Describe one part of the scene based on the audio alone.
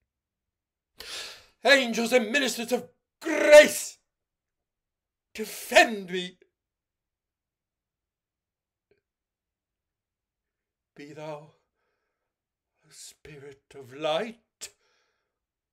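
A man speaks expressively into a close microphone, in short bursts with pauses.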